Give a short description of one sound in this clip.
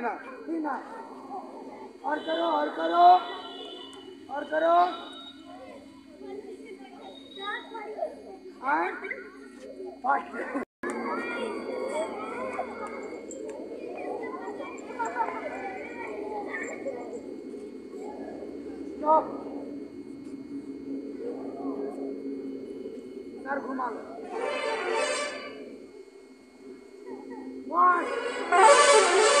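A group of young children chant counts loudly together outdoors.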